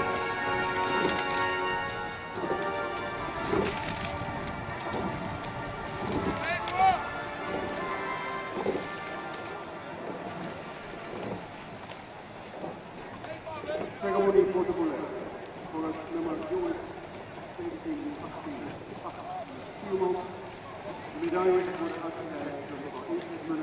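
A crowd of people chatters and calls out outdoors in the distance.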